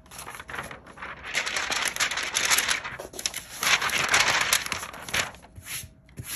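A hand brushes across a hard surface.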